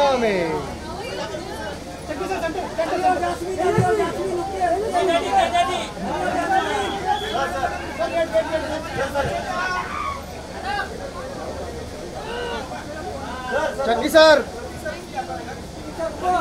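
Several men shout and call out nearby.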